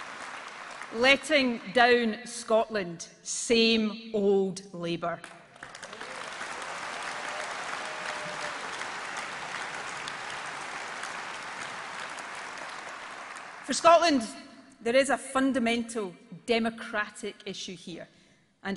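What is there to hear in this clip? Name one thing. A woman speaks with emphasis through a microphone in a large hall.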